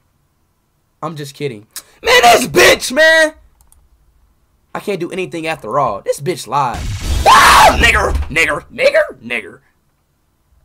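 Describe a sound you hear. A young man shouts with excitement close to a microphone.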